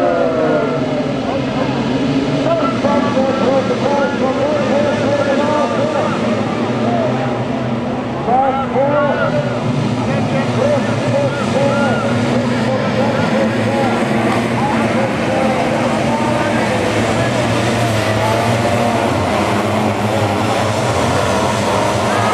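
A pack of sidecar motocross outfits races at full throttle, engines roaring.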